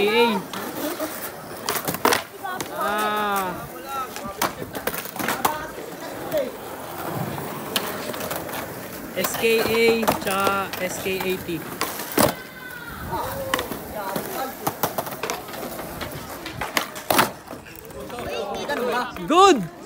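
Skateboard wheels roll over concrete.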